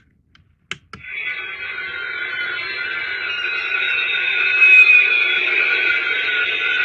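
A toy plays a loud rumbling launch sound effect through a small speaker.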